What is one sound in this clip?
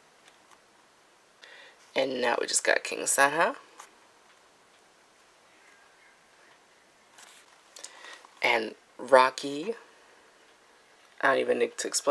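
Glossy paper pages rustle softly as they are turned.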